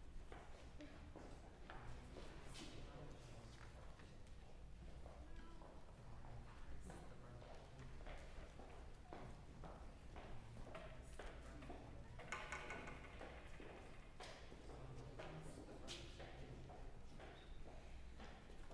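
Footsteps shuffle slowly on a floor in a large echoing hall.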